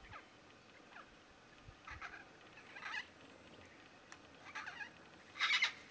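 A cockatoo gives short, raspy chirps nearby, now and then.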